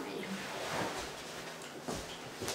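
Someone climbs onto a soft sofa with a rustle of cushions.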